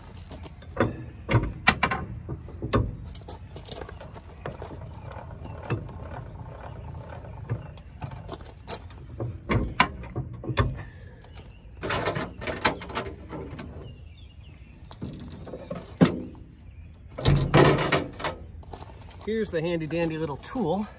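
Metal parts of a trailer hitch clank and rattle.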